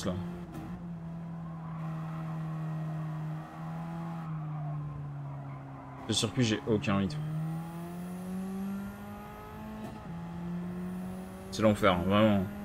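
A racing car engine drones steadily, its pitch rising and falling with gear changes.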